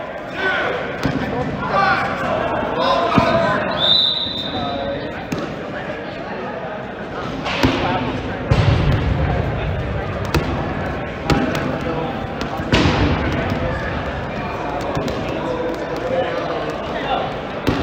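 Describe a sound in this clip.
Rubber balls thump off the hard floor and walls.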